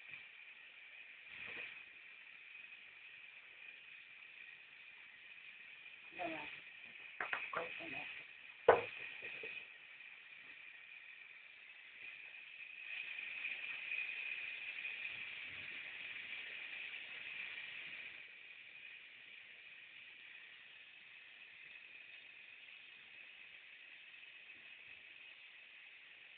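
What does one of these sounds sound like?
Water runs from a shower hose.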